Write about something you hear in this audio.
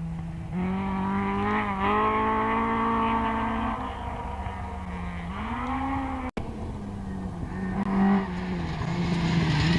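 A rally car engine revs hard and roars past.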